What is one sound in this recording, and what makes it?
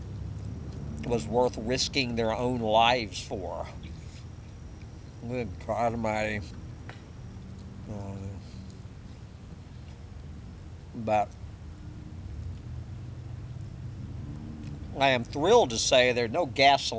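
An elderly man talks with animation, close by.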